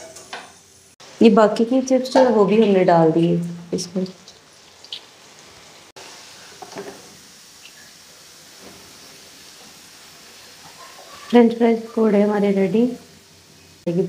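Oil bubbles and sizzles steadily in a pan.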